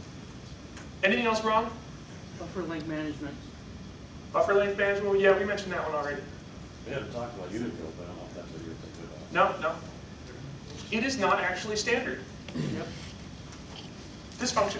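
A man speaks calmly, heard from across a room.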